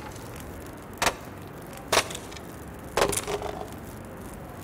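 Wood cracks and splinters with sharp blows.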